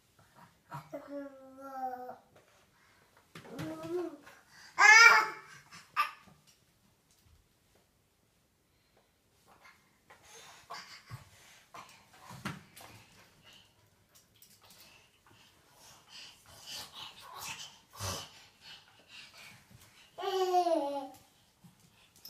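A baby babbles and squeals loudly nearby.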